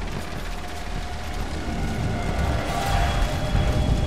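A fire crackles and roars nearby.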